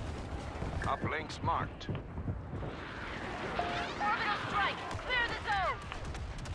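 Blaster shots and explosions ring out from a video game.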